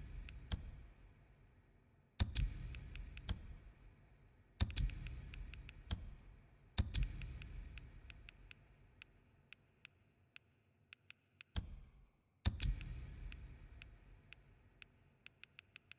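Soft menu clicks tick again and again.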